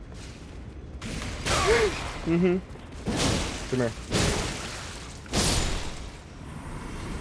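Heavy blows and crashes ring out in a fight.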